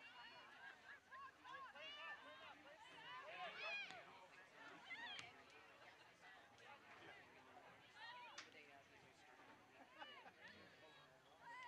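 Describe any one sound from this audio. Young women shout and call out across an open field.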